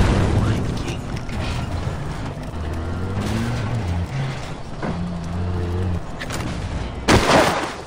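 A vehicle engine rumbles low and steadily.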